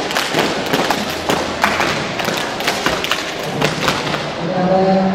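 A group of young people stamp their feet in rhythm on a hard floor.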